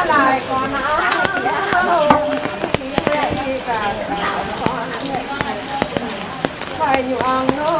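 Several women sing together close by.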